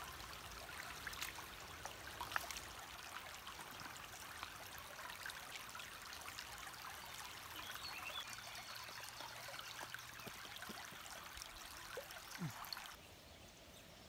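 A shallow stream babbles over stones.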